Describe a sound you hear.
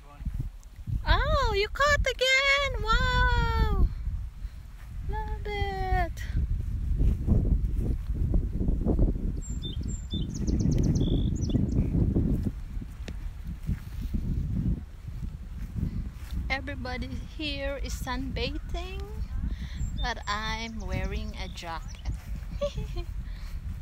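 A young woman talks close to a microphone with animation.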